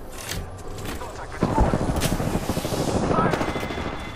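A shield device whirs as it charges.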